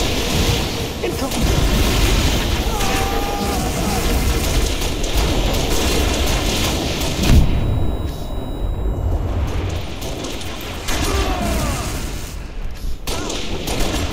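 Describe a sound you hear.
A sniper rifle fires loud, sharp single shots.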